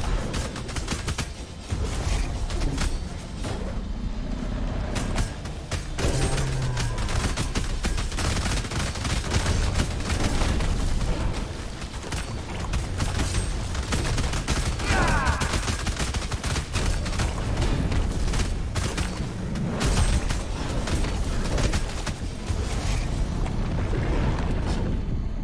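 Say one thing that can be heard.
Game sword slashes and hits crack rapidly in bursts.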